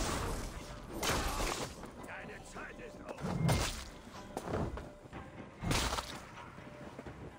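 Weapons clash and strike with sharp impacts.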